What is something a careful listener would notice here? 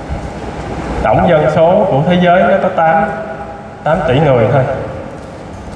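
A man's voice chants over loudspeakers in a large, echoing hall.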